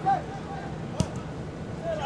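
A football is kicked with a dull thud.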